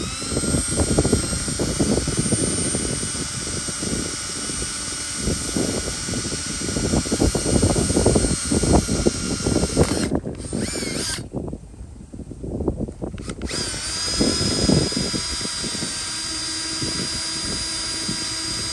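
A drill bit grinds and chatters against a metal sheet.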